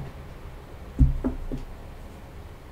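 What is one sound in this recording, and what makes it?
A middle-aged woman speaks calmly close by.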